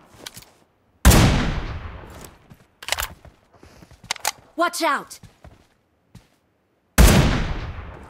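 A sniper rifle fires a loud shot that echoes away.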